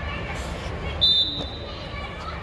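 A referee's whistle blows a short, sharp blast.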